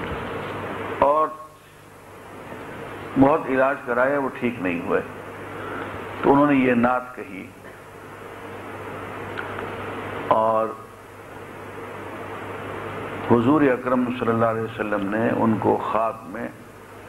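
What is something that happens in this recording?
An elderly man speaks slowly and earnestly into a microphone, with pauses between phrases.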